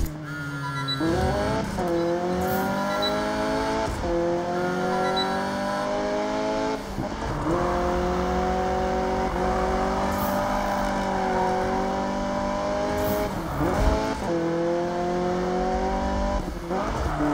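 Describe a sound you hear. A racing car engine roars loudly, revving up through the gears and dropping in pitch at each gear change.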